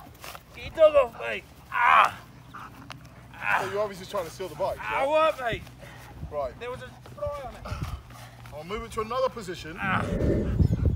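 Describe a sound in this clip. A man speaks loudly and commandingly nearby.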